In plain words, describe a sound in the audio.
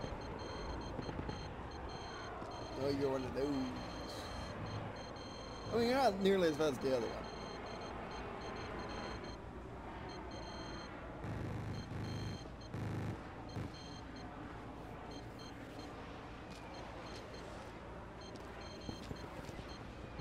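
Footsteps tread steadily over hard dirt.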